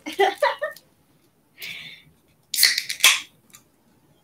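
A woman laughs softly.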